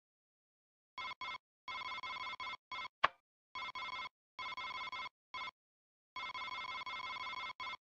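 A computer gives rapid electronic beeps as a number is typed in.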